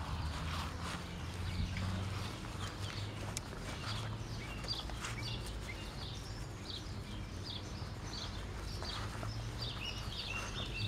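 Puppies give high, short squeaks.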